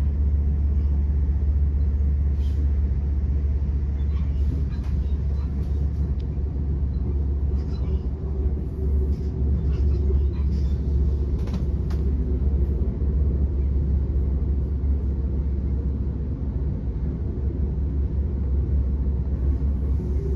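Wheels clatter and click on the rails.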